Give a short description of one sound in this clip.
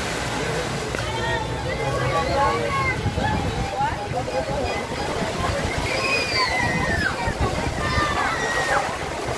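Children shout and squeal with high voices.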